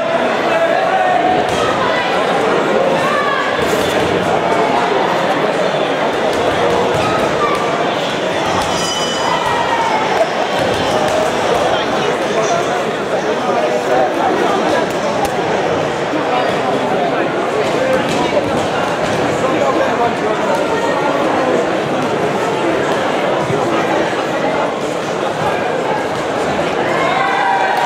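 A crowd of people chatters loudly in a large echoing hall.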